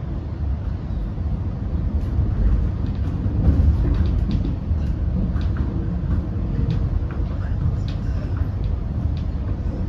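Wheels clatter on the rails.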